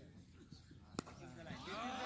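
A cricket bat strikes a ball far off outdoors.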